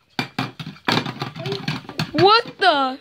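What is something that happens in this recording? A plastic toy pan clatters and knocks.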